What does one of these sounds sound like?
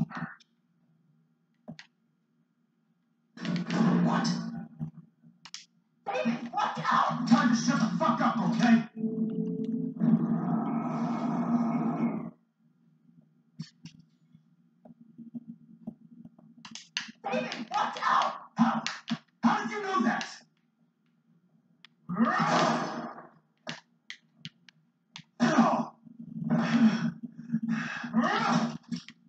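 Video game sounds play loudly from a television.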